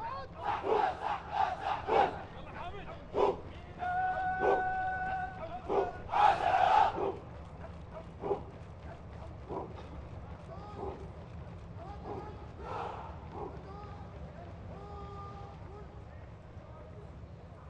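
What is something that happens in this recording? Many boots stamp in step on pavement as troops march.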